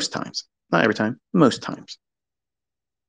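A man speaks briefly and with animation.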